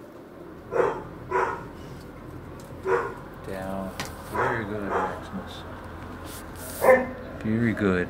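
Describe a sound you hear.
A dog barks close by.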